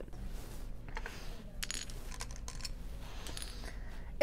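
Small stones clink softly against glass.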